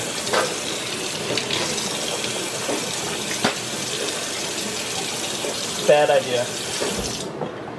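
Water runs from a tap into a metal sink.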